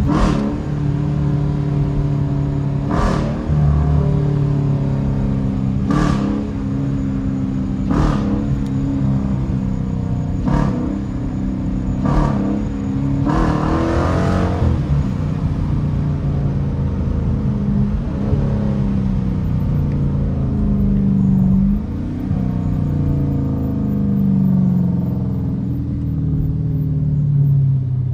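A car engine rumbles deeply and revs as the car drives.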